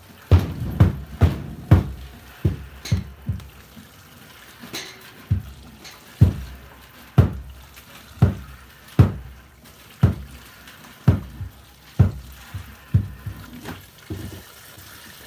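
Milk squirts in rhythmic bursts into a plastic pail as a cow is milked by hand.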